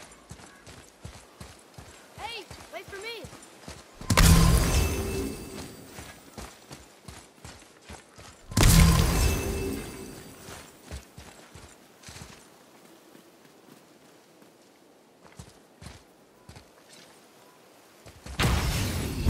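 Heavy footsteps crunch through grass and over stone.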